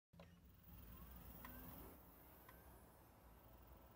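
A button clicks as a game console is switched on.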